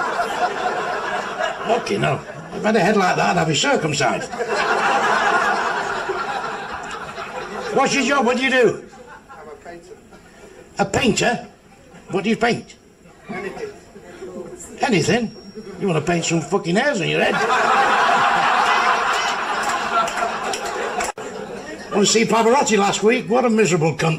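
A man speaks into a microphone on a stage.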